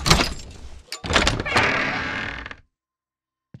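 A heavy metal barred door creaks and scrapes open.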